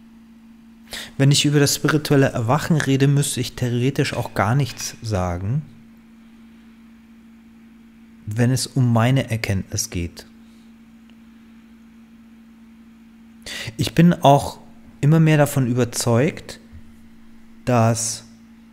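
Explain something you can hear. A man speaks calmly and thoughtfully into a close microphone, with pauses.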